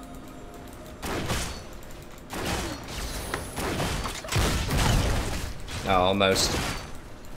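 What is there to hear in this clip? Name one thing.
Game spell effects and combat impacts crackle and burst in quick bursts.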